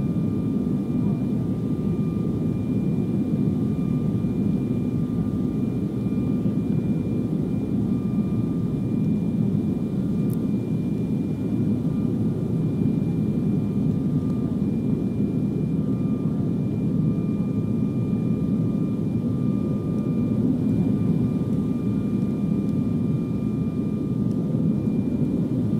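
An aircraft engine drones steadily, heard from inside the cabin.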